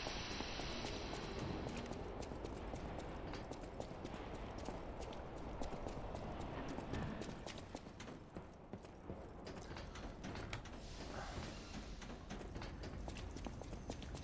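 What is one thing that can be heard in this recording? Footsteps clatter quickly on a hard floor.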